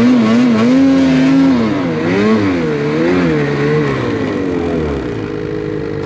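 A snowmobile engine revs loudly up and down close by.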